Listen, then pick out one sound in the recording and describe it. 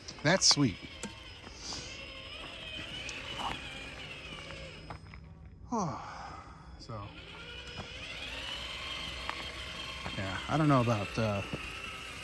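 A small electric motor whines steadily as a toy truck crawls along.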